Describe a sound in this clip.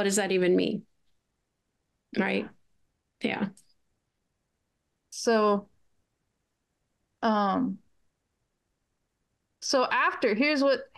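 Middle-aged women talk over an online call, in short phrases with silent pauses.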